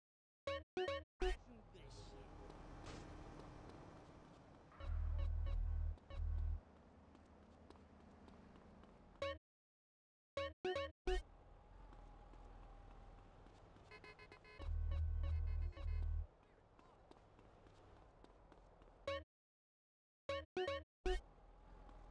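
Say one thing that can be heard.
Menu selection beeps click in quick succession.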